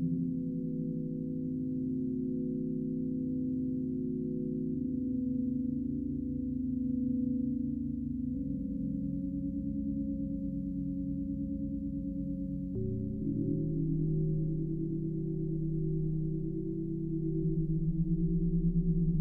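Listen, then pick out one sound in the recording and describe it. A modular synthesizer plays low, droning tones that shift in pitch every few seconds.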